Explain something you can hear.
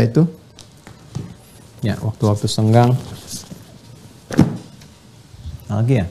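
Books thump as they are set down on a table.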